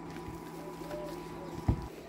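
Hands squish and knead a soft mixture.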